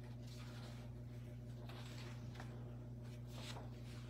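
Paper rustles as a man turns a page.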